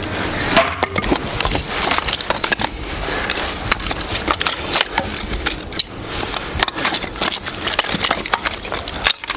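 Split wood pieces clatter as a man gathers them.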